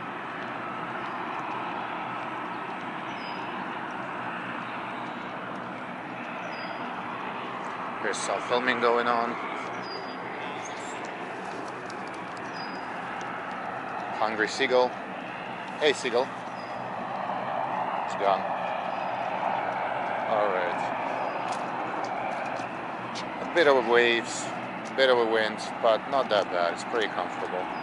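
Water laps gently against a pier.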